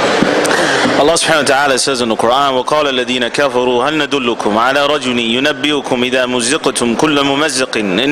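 A man speaks slowly through a microphone in a large echoing hall.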